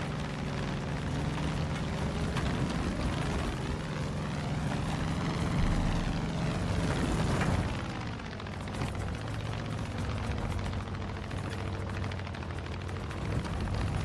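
Wind rushes past a plane's cockpit.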